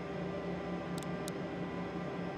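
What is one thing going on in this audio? Switches on a cockpit panel click twice.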